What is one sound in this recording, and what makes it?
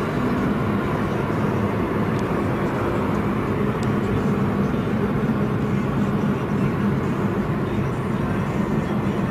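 A motorcycle engine drones just ahead.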